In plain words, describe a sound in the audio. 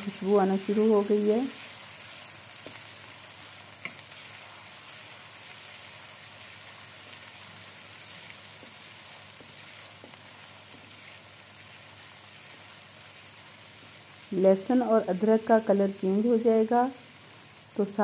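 A wooden spatula scrapes and stirs food in a metal pan.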